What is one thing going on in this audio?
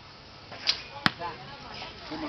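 A bowstring snaps as an arrow is shot.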